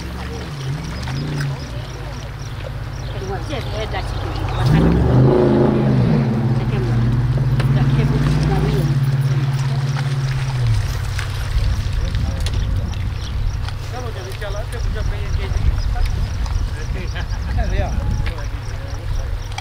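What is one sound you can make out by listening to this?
Small waves lap against rocks along the shore.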